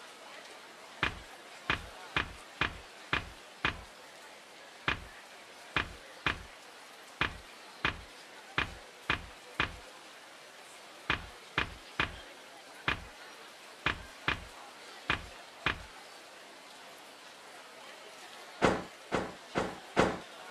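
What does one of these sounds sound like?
Game menu selection clicks tick at a steady pace.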